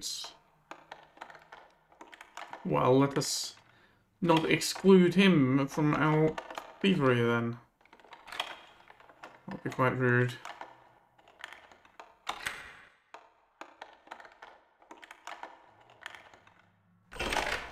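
Metal picks click and scrape inside a door lock.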